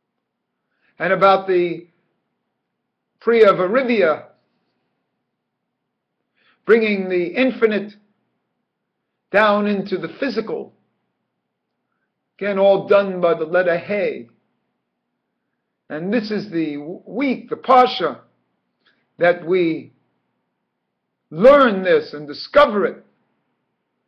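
An older man speaks calmly into a microphone close by, in short phrases with pauses.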